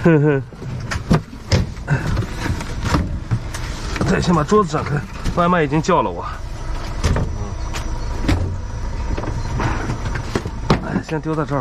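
A cardboard box scrapes and bumps as it is handled.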